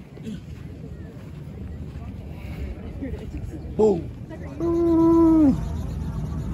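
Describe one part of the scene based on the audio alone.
Young men talk casually nearby outdoors.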